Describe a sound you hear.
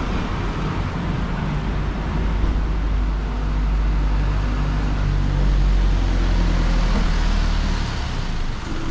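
A truck engine rumbles close by as it drives along the street.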